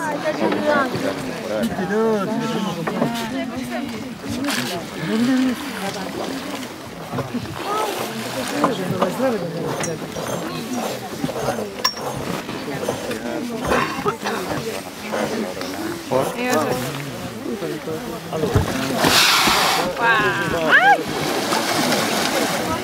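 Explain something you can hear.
Water splashes and laps around a surfacing whale.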